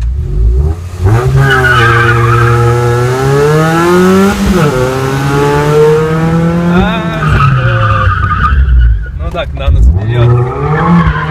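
A car engine roars loudly, revving up and dropping as the gears change.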